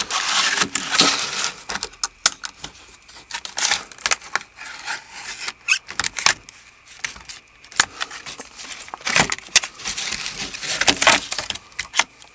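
Stiff plastic packaging rustles and crinkles close by.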